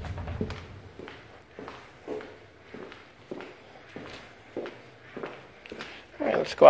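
Footsteps walk across a tile floor.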